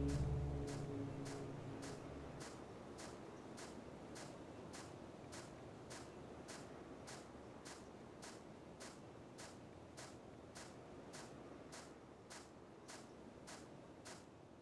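Footsteps crunch steadily on gravel and leaves.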